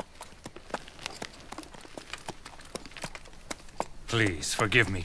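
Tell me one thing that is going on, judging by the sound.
A horse's hooves clop slowly on the ground.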